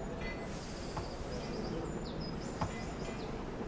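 A tool knocks sharply on wood now and then.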